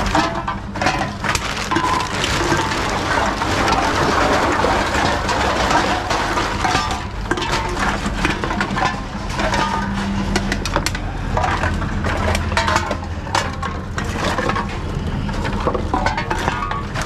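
A recycling machine hums steadily.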